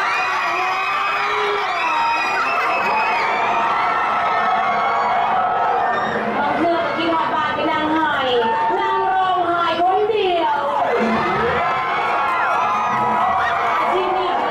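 A young man sings with feeling through a microphone.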